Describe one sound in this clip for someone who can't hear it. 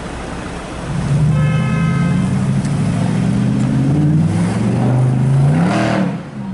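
A sports car engine revs loudly and rises in pitch.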